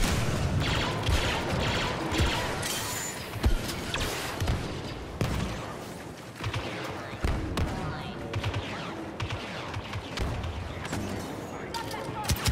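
Laser blasters fire in sharp bursts.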